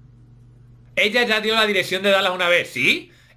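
A young man talks animatedly through a microphone.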